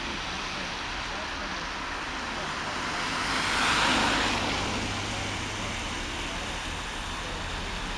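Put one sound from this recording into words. A vehicle's engine and road noise rumble steadily.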